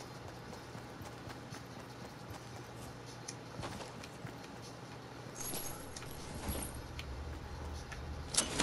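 Quick footsteps patter over grass and dirt.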